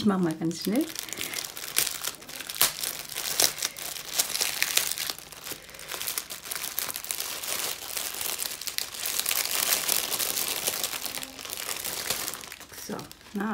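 Plastic wrapping crinkles and rustles under handling.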